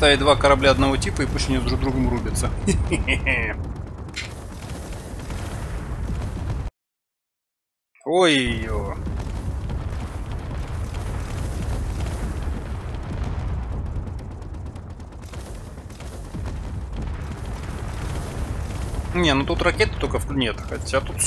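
Explosions boom and rumble during a space battle.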